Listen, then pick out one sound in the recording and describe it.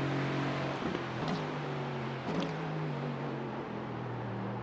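A racing car engine roars and winds down as the car brakes hard.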